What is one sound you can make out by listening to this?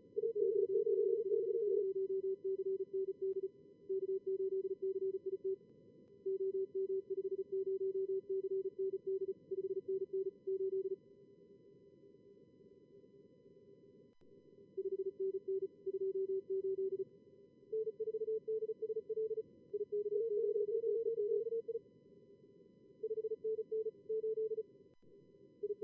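Morse code beeps in quick, steady tones, sometimes two signals at once.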